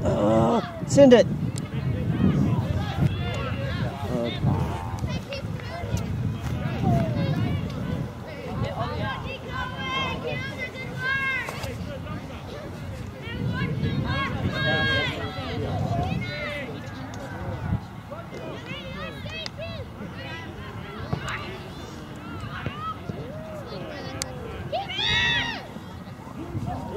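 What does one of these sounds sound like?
Adult men and women shout and call out from a distance outdoors.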